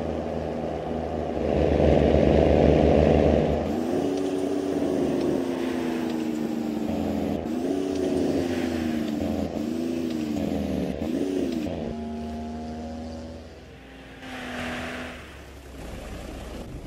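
A bus engine drones and revs, its pitch rising and falling as it shifts gears.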